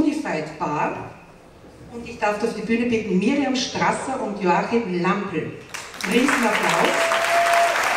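A woman speaks calmly into a microphone, heard over loudspeakers in a large hall.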